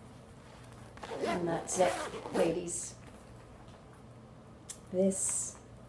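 A middle-aged woman talks warmly and close by.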